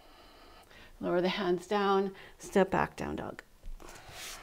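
A young woman speaks calmly, as if giving instructions, close to a microphone.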